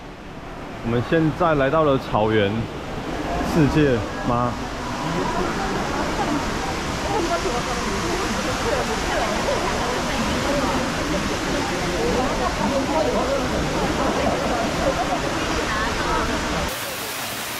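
A crowd chatters and murmurs all around.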